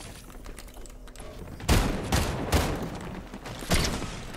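A pickaxe strikes a wall with sharp thuds.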